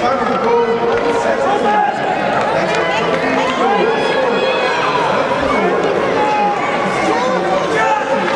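Young children shout and call out in a large echoing arena.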